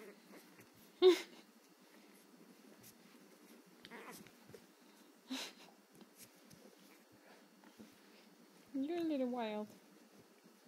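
A small puppy yips and whines.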